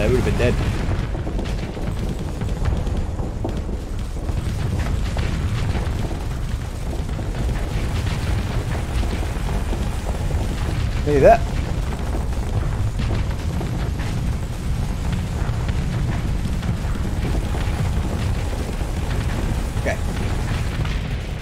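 Spaceship weapons fire in rapid bursts.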